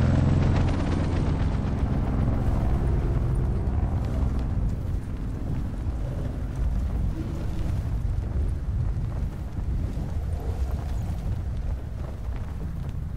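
Wind rushes past steadily during a fast glide through the air.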